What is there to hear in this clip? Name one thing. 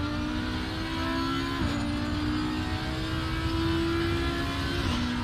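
Tyres rumble over the track.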